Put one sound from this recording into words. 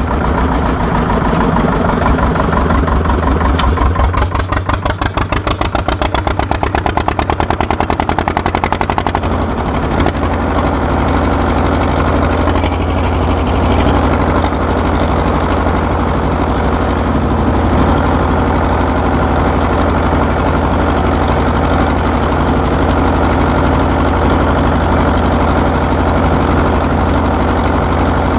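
An old tractor engine chugs steadily up close.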